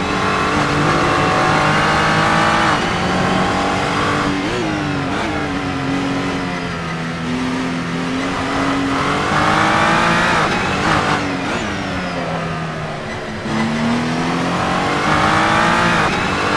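A racing car engine roars loudly, rising in pitch and dropping sharply at each gear change.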